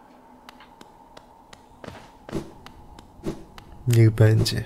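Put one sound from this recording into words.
Small footsteps tap lightly and evenly.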